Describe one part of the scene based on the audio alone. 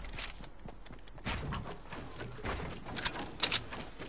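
Wooden pieces snap into place with quick clacks.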